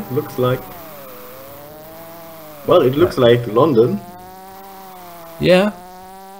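A kart engine drones steadily, its pitch dipping and rising with speed.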